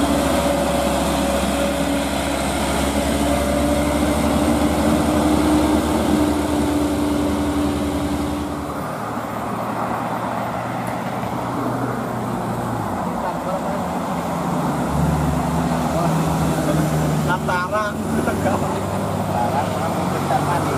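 A heavy truck engine rumbles as it drives by.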